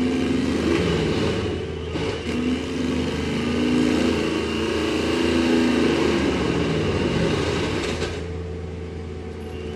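A tree stump cracks and scrapes as it is pushed over.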